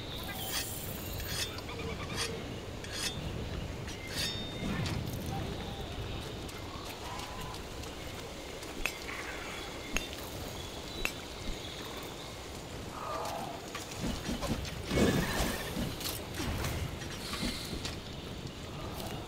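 A sword clangs and slashes against a monster.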